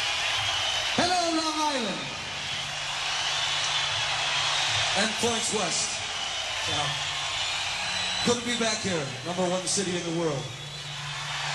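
A man speaks loudly through a microphone, echoing in a large hall.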